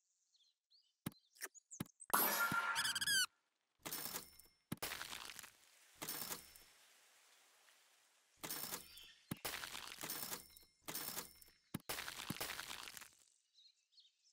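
Playful game sound effects pop and chime in quick bursts.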